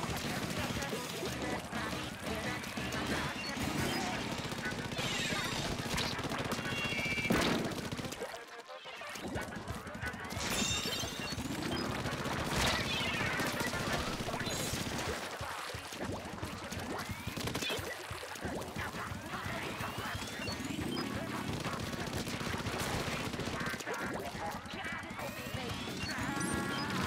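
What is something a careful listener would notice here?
Cartoonish paint guns squirt and splat rapidly.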